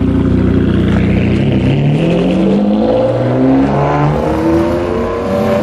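A sports car engine revs up loudly as the car pulls away.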